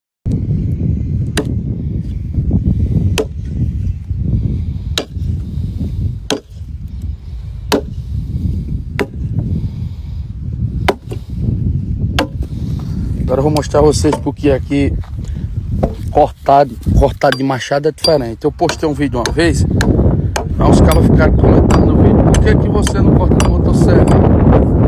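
An axe chops into wood with sharp knocks.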